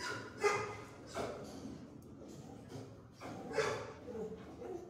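A dog barks sharply nearby.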